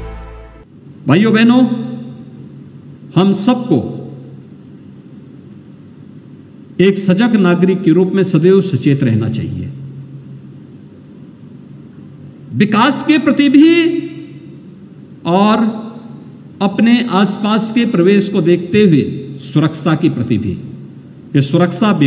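A man speaks forcefully into a microphone, heard through loudspeakers with echo.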